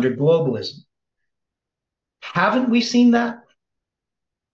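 An older man speaks calmly into a close microphone.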